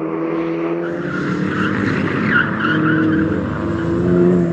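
Tyres screech on tarmac.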